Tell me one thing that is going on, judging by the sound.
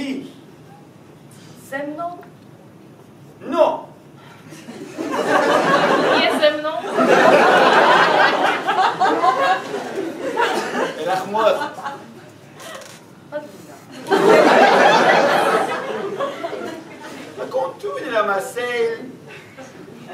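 A young man speaks with animation to an audience.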